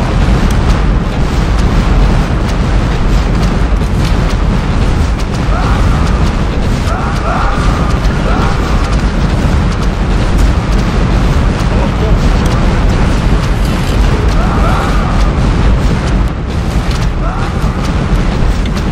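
Cannons fire again and again in a noisy sea battle.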